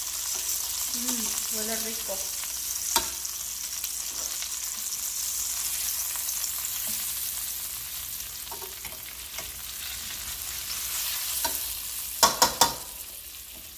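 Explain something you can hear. Metal tongs clink against a frying pan.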